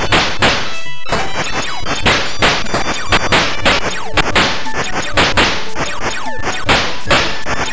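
Explosions burst with crackling noise.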